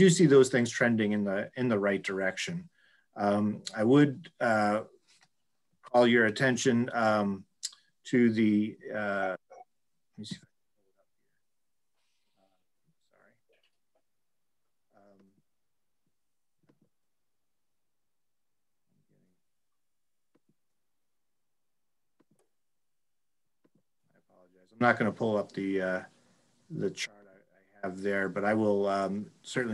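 A middle-aged man speaks calmly over an online call, pausing now and then.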